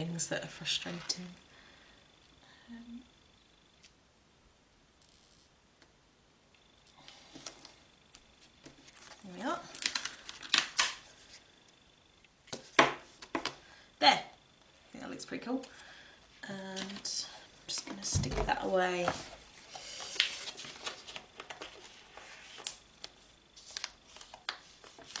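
Paper cards rustle and tap softly as they are handled.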